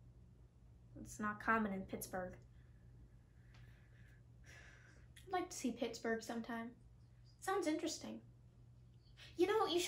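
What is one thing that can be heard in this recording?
A second young woman answers calmly close to a microphone.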